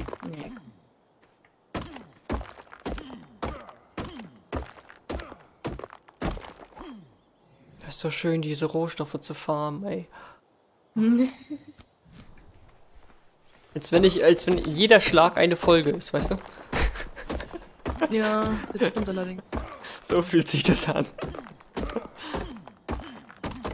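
Stone axe blows knock sharply against rock, again and again.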